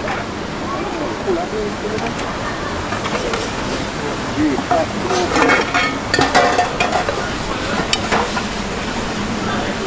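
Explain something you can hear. Metal pots clink and scrape as they are washed in water.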